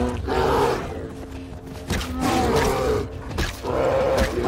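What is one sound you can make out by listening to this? A wooden club thuds against an animal.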